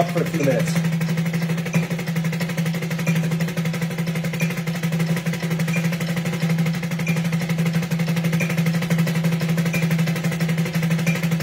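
Drumsticks play fast, even strokes on a snare drum.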